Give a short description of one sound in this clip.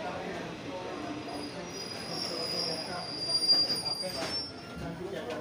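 A passenger train rolls to a stop along a platform.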